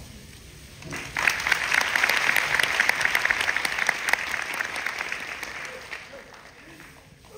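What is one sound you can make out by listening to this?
An indoor crowd applauds.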